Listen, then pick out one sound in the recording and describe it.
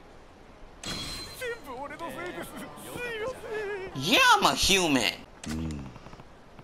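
A man yells in alarm, close by.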